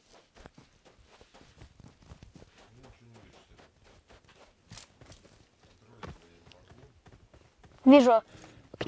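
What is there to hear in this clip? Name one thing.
Footsteps crunch quickly over sand.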